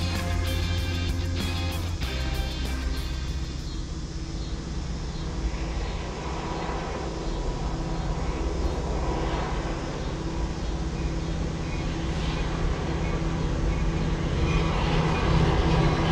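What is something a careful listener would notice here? Wind rumbles across open ground outdoors.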